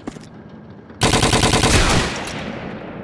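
A rapid burst of automatic gunfire rattles.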